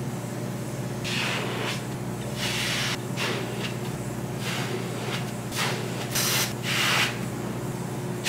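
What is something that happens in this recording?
A young woman blows air into a balloon in short puffs.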